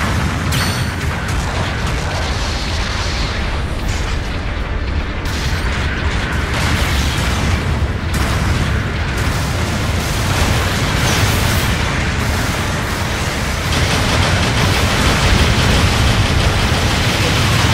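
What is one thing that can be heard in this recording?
Large robot footsteps thud heavily.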